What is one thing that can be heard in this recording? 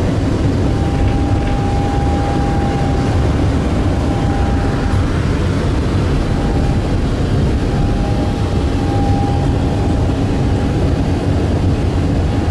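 A tram's electric motor whines with a steady high hum.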